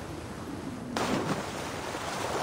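Water splashes as a body plunges in.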